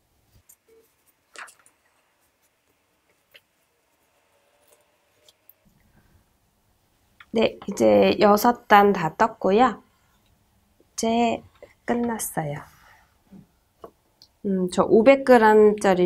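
Thick cord rustles softly as a crochet hook pulls it through stitches.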